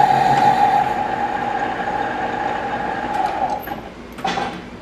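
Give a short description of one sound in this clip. A metal lathe spins with a steady high whine.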